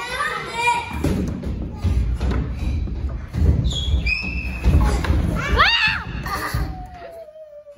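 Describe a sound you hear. A child slides down a slide with a low rumble.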